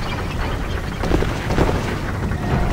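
A sword strikes a creature with a dull thud.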